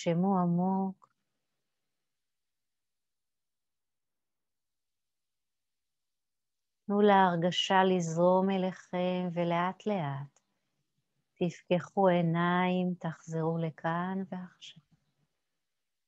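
A woman speaks calmly and softly, close by, with long pauses.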